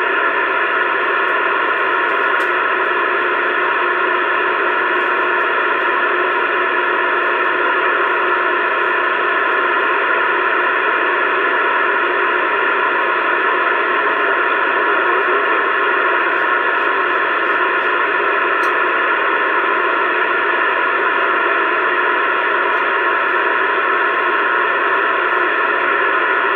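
A CB radio hisses with steady static through its speaker.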